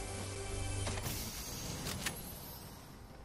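A game treasure chest bursts open with a bright rush of sound.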